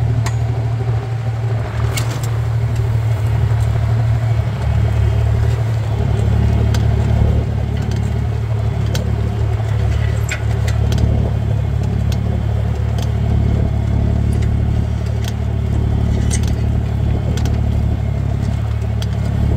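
A plough clanks and rattles as it drags through the soil.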